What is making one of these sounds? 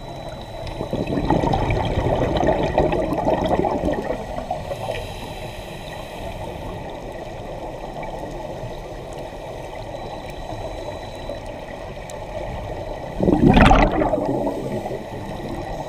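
Air bubbles rush and gurgle loudly underwater.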